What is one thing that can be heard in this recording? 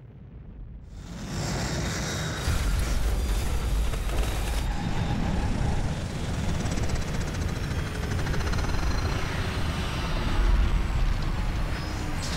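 A spacecraft engine roars steadily as the craft flies past.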